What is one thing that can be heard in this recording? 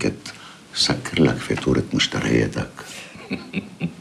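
An elderly man speaks calmly and expressively, close by.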